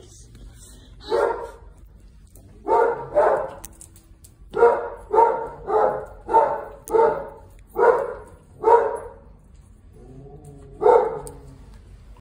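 A dog barks repeatedly close by.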